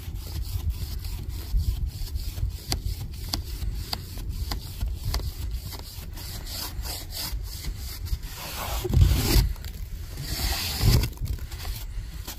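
A hand brushes and scrapes loose snow off a surface.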